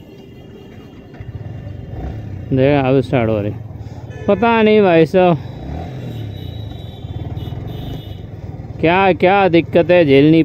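A motorcycle engine runs close by and revs as the bike rides along.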